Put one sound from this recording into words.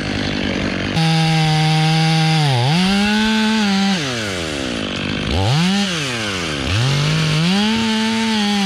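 A chainsaw cuts through wood.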